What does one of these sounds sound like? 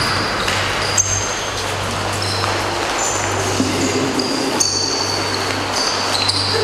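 Sneakers squeak on a hard floor as people run.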